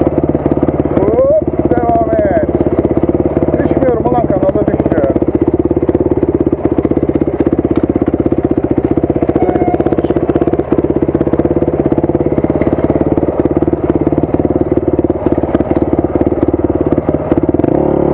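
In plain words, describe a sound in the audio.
A dirt bike engine chugs loudly and steadily close by.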